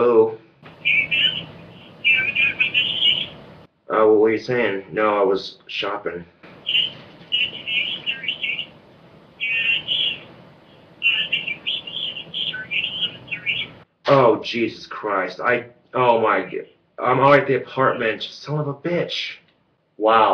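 A young man talks casually on a phone, close by.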